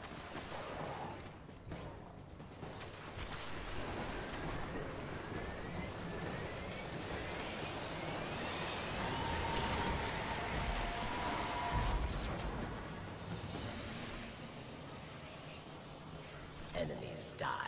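Gunfire and explosions rumble from a game.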